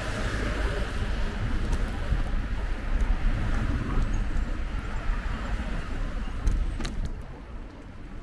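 A car drives past close by on the road and fades.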